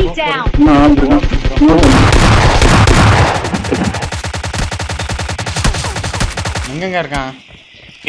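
Automatic gunfire rattles rapidly.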